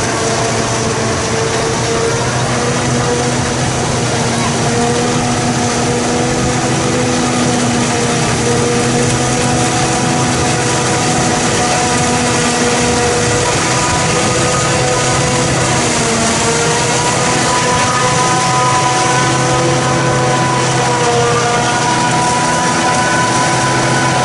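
A tractor engine drones steadily close by.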